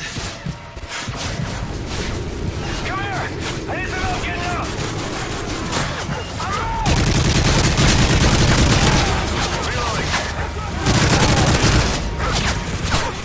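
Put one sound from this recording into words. Rapid gunfire cracks and booms in bursts.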